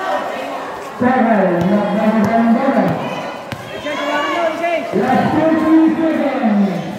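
A man shouts with excitement close by.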